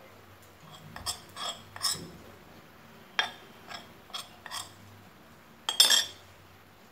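A metal spoon clinks and scrapes against a ceramic bowl.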